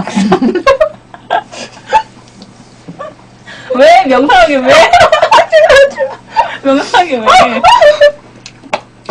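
Two young women laugh loudly together.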